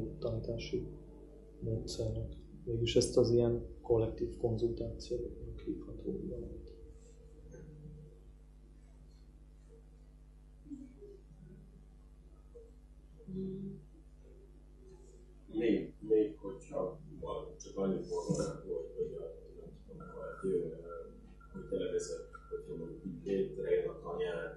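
A man speaks calmly nearby, pausing now and then.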